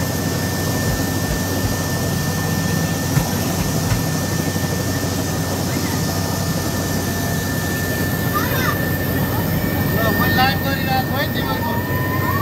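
A man speaks close by over the engine noise.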